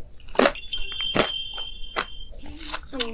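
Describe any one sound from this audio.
Crunchy food is bitten and chewed up close.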